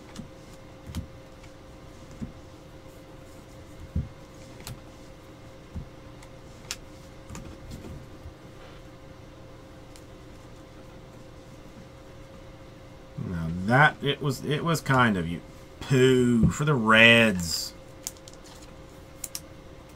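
Trading cards flick and rustle as they are shuffled by hand, close by.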